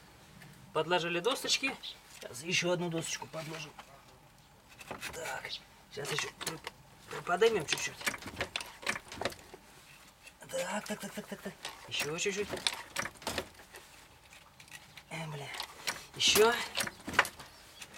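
A car jack clicks as its handle is pumped.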